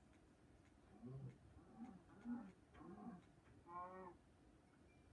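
A cow moos in a video game as it is struck.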